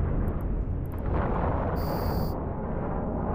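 Laser weapons fire in a quick burst of zaps.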